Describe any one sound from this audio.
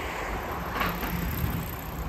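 A shopping cart's wheels rattle as it is pushed past.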